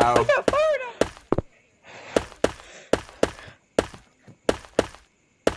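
Footsteps thud steadily on soft ground.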